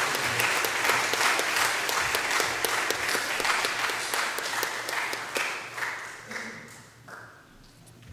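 An audience applauds in a large echoing hall and slowly dies down.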